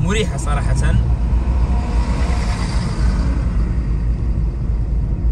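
A bus roars past close by.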